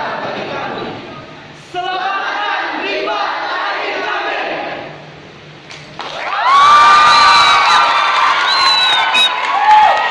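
A group of young men and women chant and sing together loudly, with echo.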